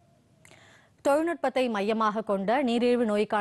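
A woman newsreader speaks calmly and clearly into a microphone.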